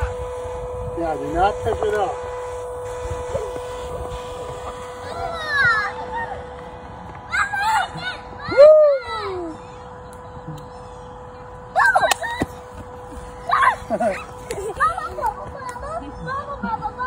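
Young children squeal and shout playfully outdoors.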